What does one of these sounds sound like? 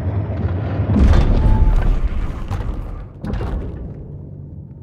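A heavy door grinds and rumbles open.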